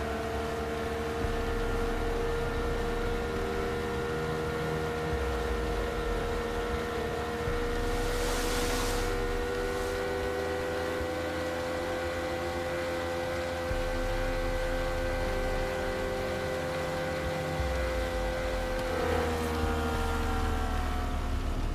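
A motorboat engine hums steadily.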